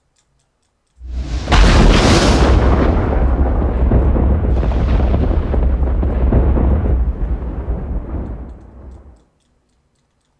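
Electric crackling rumbles loudly and then fades away.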